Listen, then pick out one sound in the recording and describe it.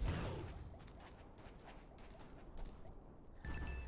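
Weapons strike and thud in a fight.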